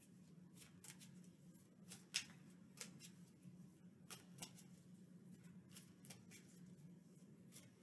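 Fingertips tap and scratch lightly on fabric close by.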